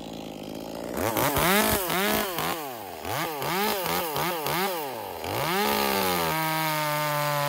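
A chainsaw engine revs up and down in short bursts.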